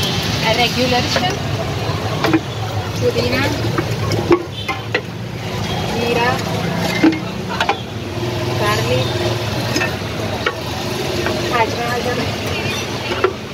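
A metal ladle clinks against a clay pot.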